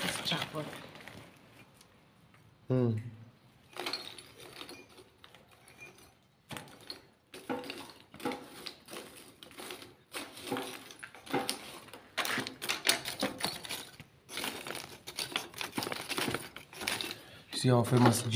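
Lumps of charcoal clatter and clink as they are dropped into a metal stove.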